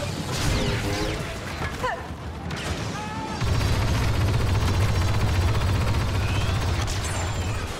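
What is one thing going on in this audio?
Blaster guns fire in rapid bursts of zapping shots.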